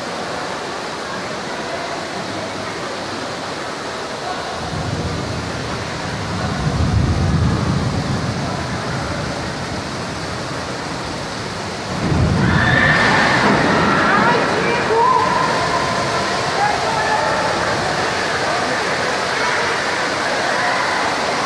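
Strong wind roars and gusts against large windows.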